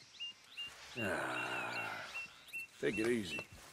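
A horse snorts and nickers close by.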